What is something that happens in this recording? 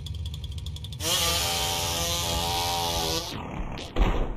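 A chainsaw engine buzzes loudly.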